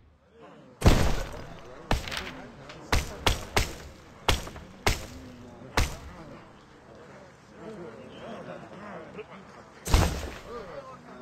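Short interface clicks sound as menu items are chosen.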